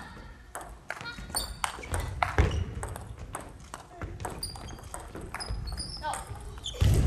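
A table tennis ball clicks back and forth between paddles and bounces on the table in an echoing hall.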